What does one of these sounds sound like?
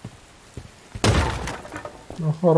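Wooden boards smash and splinter.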